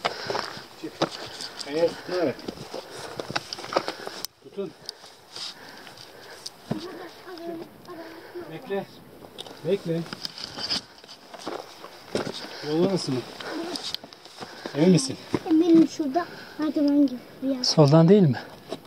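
Shoes scrape and crunch on rock.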